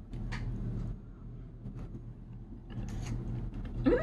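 A woman chews food with her mouth close to the microphone.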